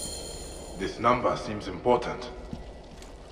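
A man speaks calmly.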